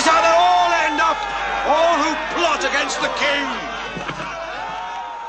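A man cries out and groans in pain close by.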